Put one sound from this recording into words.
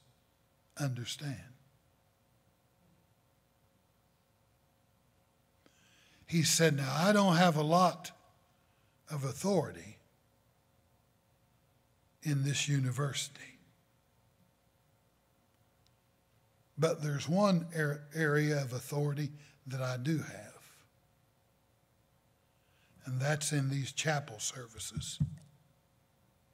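An older man speaks slowly and emphatically into a microphone, with long pauses.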